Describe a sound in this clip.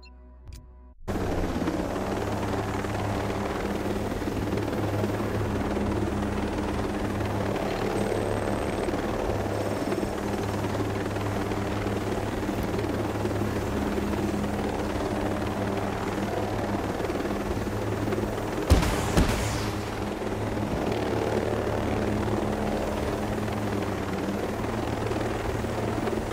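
A helicopter's rotors thump and its engine roars steadily.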